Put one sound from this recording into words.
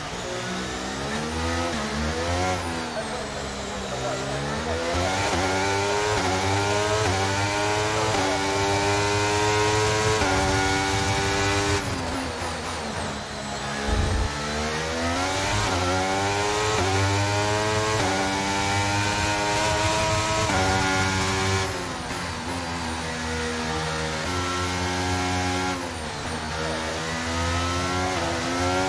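A racing car engine screams, rising in pitch through each gear and dropping sharply at each gear change.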